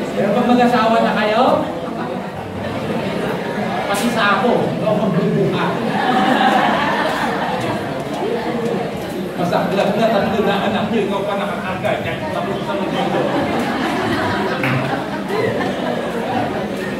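A middle-aged man speaks with animation through a microphone and loudspeakers in an echoing hall.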